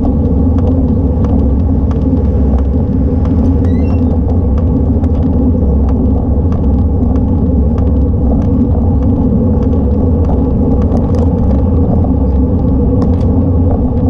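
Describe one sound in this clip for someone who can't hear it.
Wind rushes and buffets steadily over the microphone.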